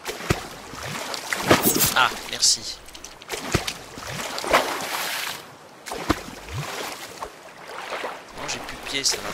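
Water splashes as a spear jabs into a shallow stream.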